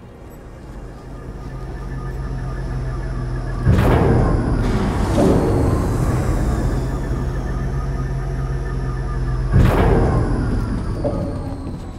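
A large lift hums steadily as it moves.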